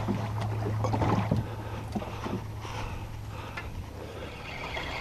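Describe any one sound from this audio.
A small boat motor hums steadily, then stops.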